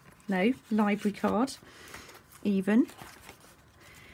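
Paper pages rustle softly as they are turned.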